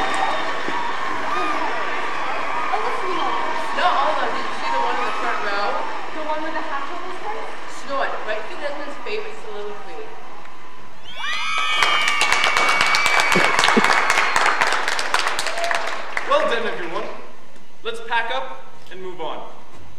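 Young women and girls speak and call out loudly in a large echoing hall.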